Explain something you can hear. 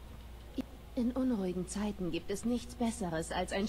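A young woman speaks calmly and warmly up close.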